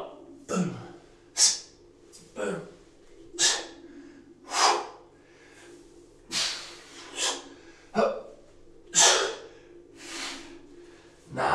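A man breathes out sharply in rhythm with exercise.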